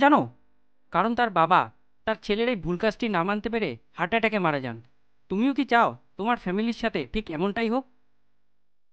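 A young man speaks earnestly up close.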